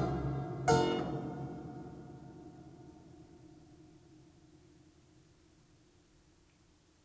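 A harpsichord chord rings out and slowly dies away.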